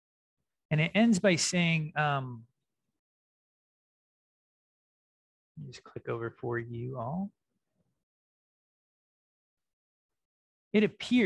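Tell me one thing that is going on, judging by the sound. A man speaks calmly and close to a microphone, in short phrases with long pauses.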